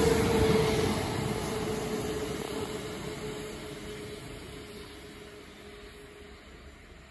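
A passenger train rumbles away along the tracks, its engine hum slowly fading into the distance.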